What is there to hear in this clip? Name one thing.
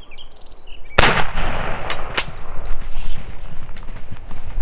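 Footsteps crunch and snap twigs on dry forest ground.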